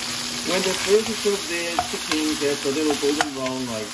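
A wooden spoon scrapes and stirs in a frying pan.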